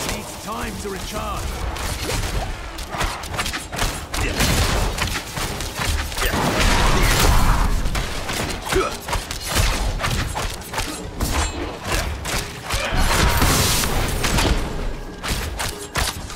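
Weapons clash and strike in a fast, noisy fight.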